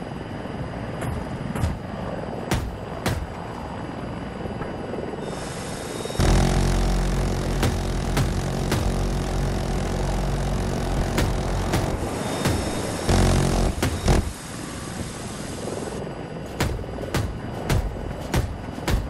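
Cannon fire and explosions thud in sharp bursts.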